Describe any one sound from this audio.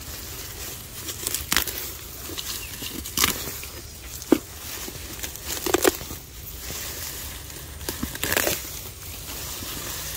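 Grass and leaves rustle as a hand brushes through them.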